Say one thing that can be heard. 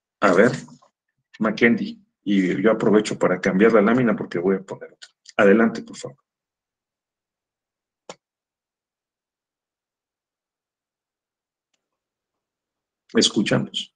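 A middle-aged man speaks calmly through an online call microphone, with pauses.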